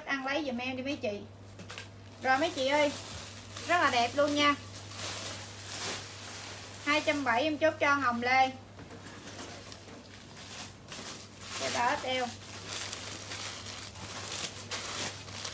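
Fabric rustles as clothing is handled.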